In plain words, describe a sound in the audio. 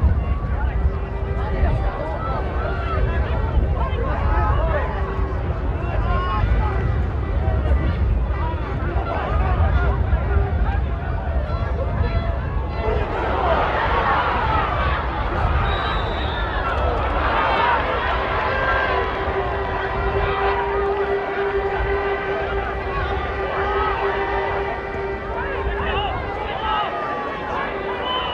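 A large crowd of spectators in a stadium murmurs and cheers.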